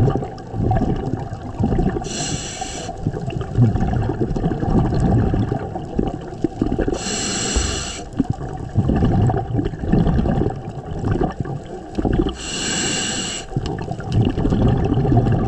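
A low underwater rumble of moving water goes on throughout.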